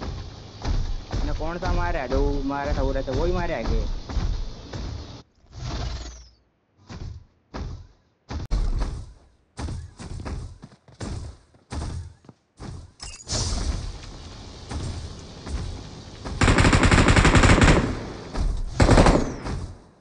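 Heavy metal footsteps thud and clank in a steady rhythm.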